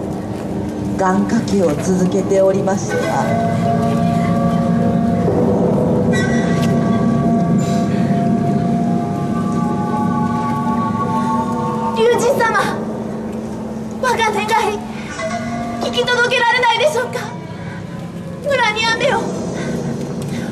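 A young woman sings and cries out with emotion.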